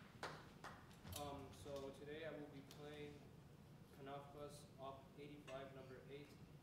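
A trombone plays slow, sustained notes in an echoing hall.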